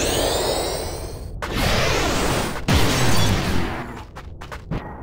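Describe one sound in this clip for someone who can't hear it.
A sword slashes and strikes with a burst of impact.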